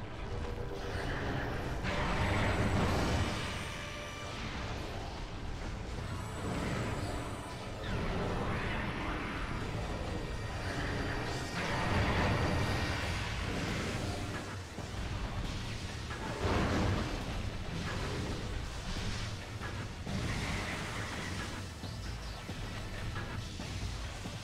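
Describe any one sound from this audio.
An arm cannon fires repeated blasts.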